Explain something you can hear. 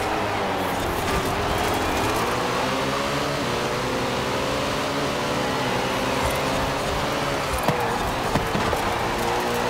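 Tyres screech on asphalt through a bend.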